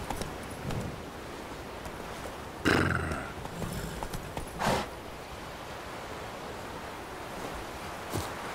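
A horse's hooves thud steadily on the ground.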